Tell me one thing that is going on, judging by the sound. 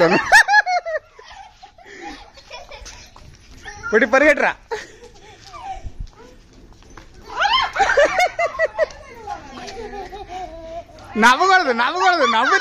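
A woman talks and laughs playfully close by.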